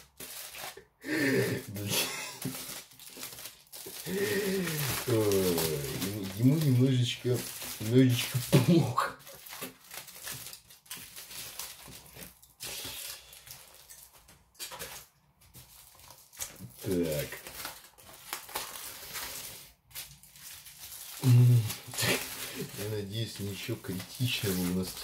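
Aluminium foil crinkles and rustles as hands fold and press it.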